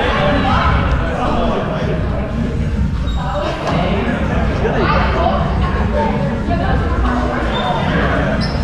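A crowd of young people chatters and talks in a large echoing gym.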